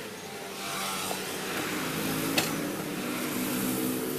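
A tyre thumps onto a metal tyre changer.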